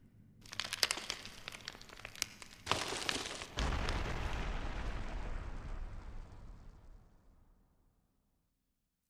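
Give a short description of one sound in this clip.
Flames burst with a roar and crackle.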